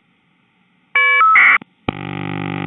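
A rapid warbling data tone chirps briefly.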